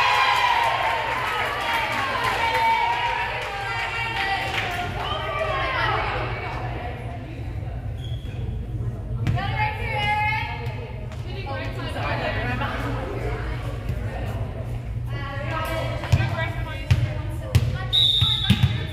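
Young women call out to each other on the court in a large echoing gym.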